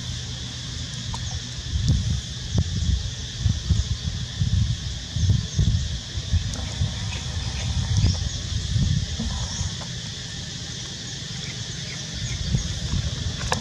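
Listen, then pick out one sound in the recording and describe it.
Monkeys chew and munch on fruit nearby.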